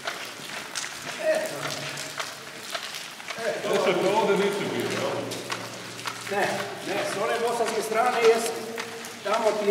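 Footsteps crunch on a wet gravel road.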